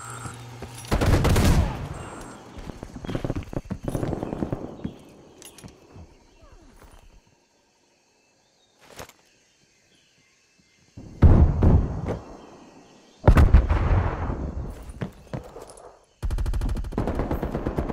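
Rifle shots crack and boom, with a rolling echo after each burst.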